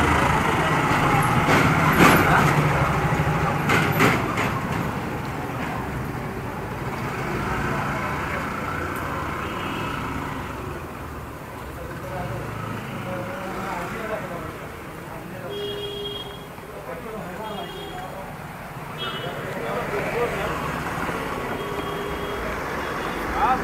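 A scooter engine hums steadily close by.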